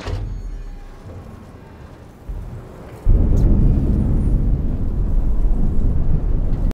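Fire roars and crackles nearby, growing louder.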